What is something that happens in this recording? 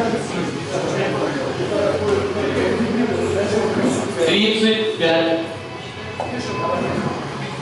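Several men talk and shout loudly in an echoing room.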